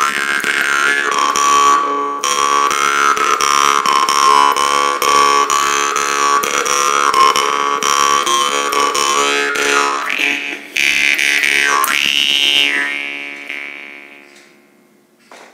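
A man plays a twanging jaw harp close by, its tone bending and wavering, then fading away.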